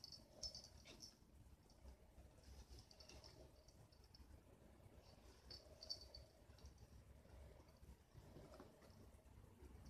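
A cat paws at a string of small lights, rustling and clicking them softly.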